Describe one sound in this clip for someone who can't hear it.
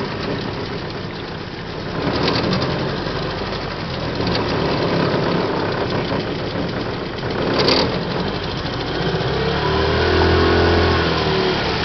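Water ripples and laps against a boat's hull.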